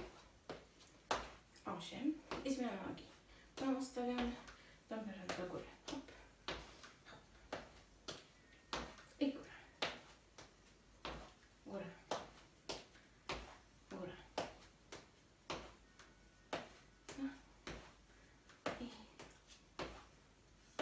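Feet thump on a wooden floor in a steady rhythm.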